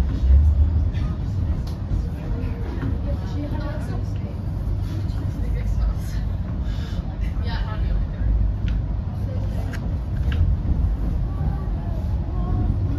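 Train wheels click and squeal faintly over rail joints.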